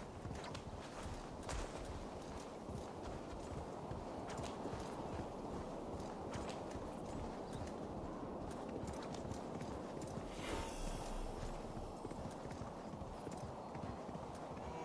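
A horse gallops with quick, steady hoofbeats.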